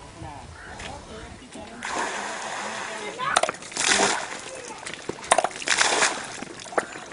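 A hand pump handle clanks as it is worked.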